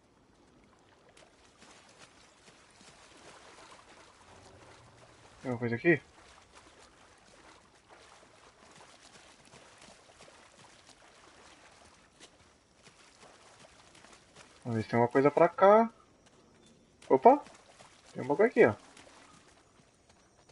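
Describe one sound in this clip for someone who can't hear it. Water splashes around a man's legs as he wades through a stream.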